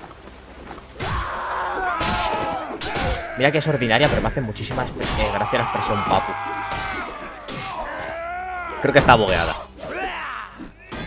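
Metal weapons clash and clang in a fight.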